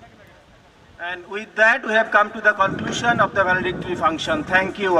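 A middle-aged man speaks loudly and animatedly into a microphone over a loudspeaker.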